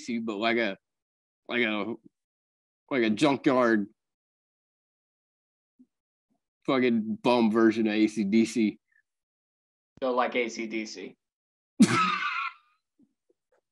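A young man talks casually over an online call.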